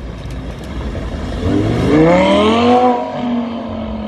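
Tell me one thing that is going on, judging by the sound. A sports car engine roars loudly as the car accelerates away.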